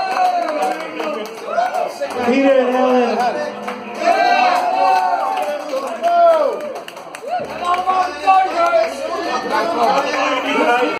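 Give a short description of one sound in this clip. Men and women chatter and laugh close by in a lively room.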